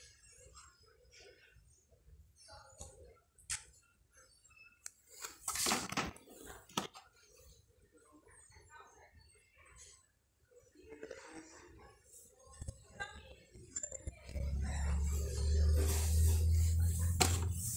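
Plastic packaging crinkles and rustles in a hand.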